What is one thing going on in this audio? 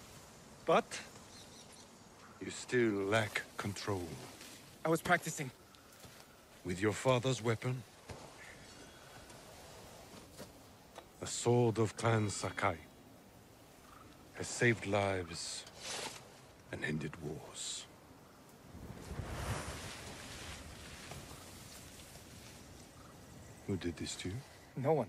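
A middle-aged man speaks sternly and calmly, up close.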